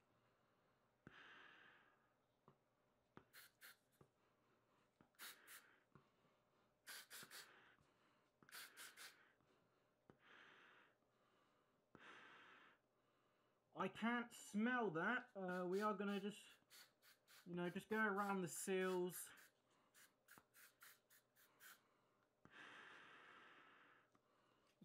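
A young man breathes heavily through a gas mask.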